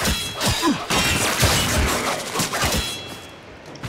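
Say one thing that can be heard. Heavy hits thud in quick succession.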